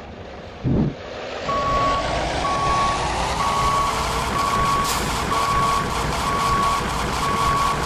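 A bus engine rumbles steadily and picks up as the bus pulls away.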